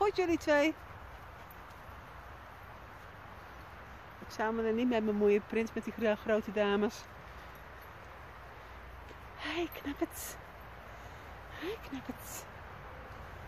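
A dog yelps and whines excitedly nearby.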